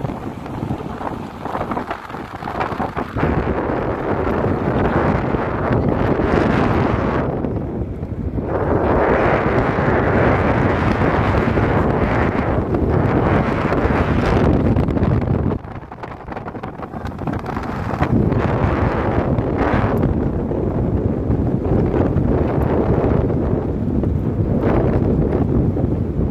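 A car rolls along a gravel road.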